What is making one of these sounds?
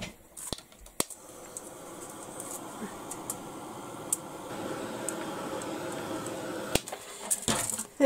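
A heat gun blows with a steady whooshing roar.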